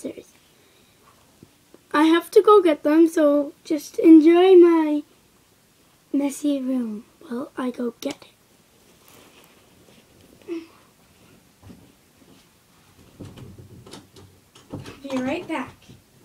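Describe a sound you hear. A girl talks close by with animation.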